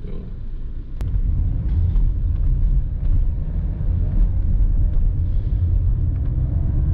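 A car engine rumbles as the car drives off.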